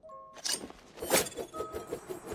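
A sharp whoosh sounds as a small flying blade launches.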